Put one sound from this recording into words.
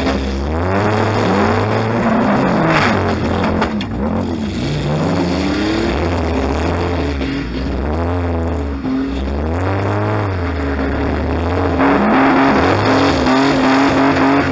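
A stripped car body rattles and clanks while driving.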